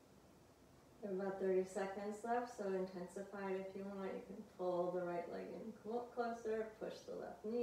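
A woman speaks calmly and slowly, close to a microphone.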